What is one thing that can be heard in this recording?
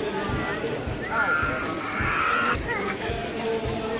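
A crowd of men and women sings together.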